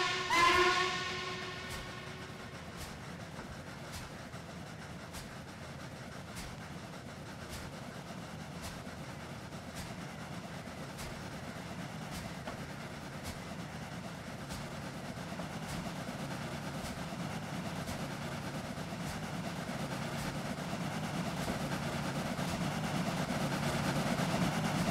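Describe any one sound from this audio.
A train rumbles on the rails, growing louder as it nears.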